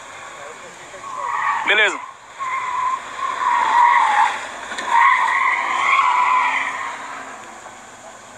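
A motorcycle engine revs and roars past.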